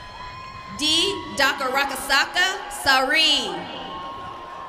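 A young woman cheers loudly outdoors.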